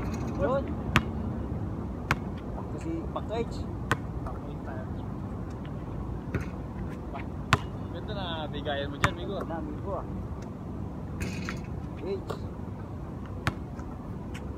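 A basketball bounces sharply on an outdoor court.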